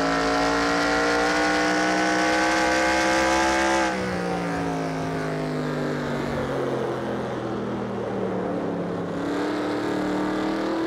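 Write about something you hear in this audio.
A racing car engine roars at high revs, drops suddenly to a lower drone, then slowly climbs again.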